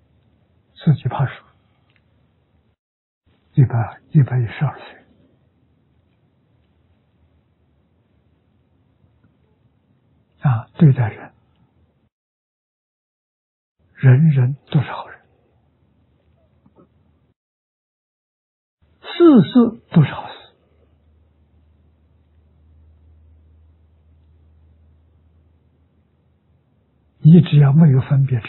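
An elderly man speaks calmly and slowly into a microphone, with long pauses between short phrases.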